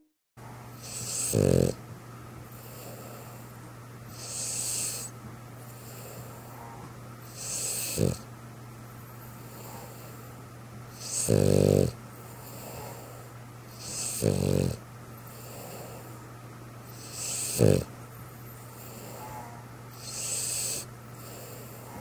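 A dog snores loudly in slow, regular breaths.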